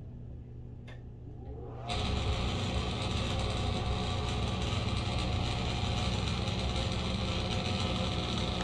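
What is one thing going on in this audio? A ceiling ventilation fan hums quietly, then suddenly whooshes much louder and keeps blowing steadily.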